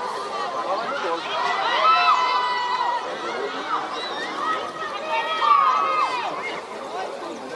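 Men shout to each other across an open field in the distance.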